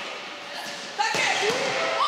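A volleyball is struck with a sharp smack in a large echoing hall.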